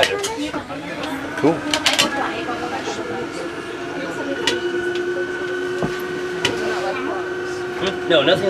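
A boat's motor hums steadily.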